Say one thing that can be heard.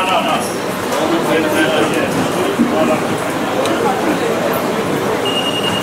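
A man talks calmly in a large echoing hall.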